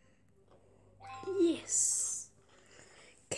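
A cartoon creature gulps and chomps a sweet with a happy gurgle.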